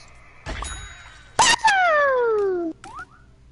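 A loud explosion bursts.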